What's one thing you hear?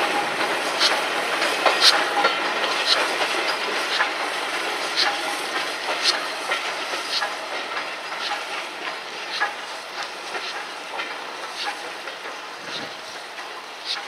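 Train wheels clank rhythmically over rail joints.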